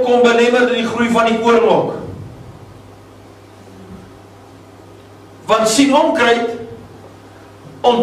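An elderly man preaches with feeling through a microphone in an echoing room, pausing between phrases.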